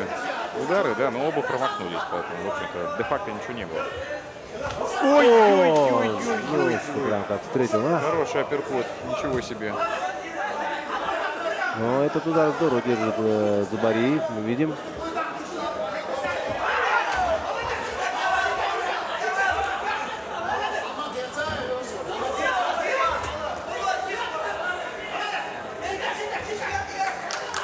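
Spectators shout and cheer in a large hall.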